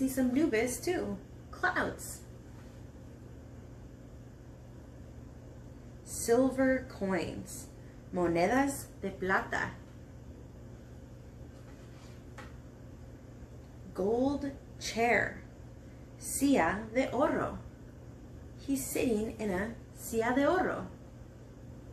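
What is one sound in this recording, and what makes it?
A woman reads aloud slowly and expressively, close by, with pauses between phrases.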